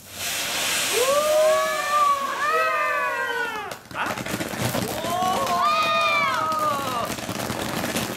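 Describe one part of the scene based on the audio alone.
A firework whistles in shrill, wavering bursts.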